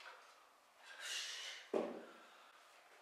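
Dumbbells thud down onto the floor.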